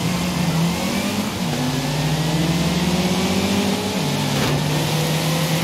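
Other car engines roar close by.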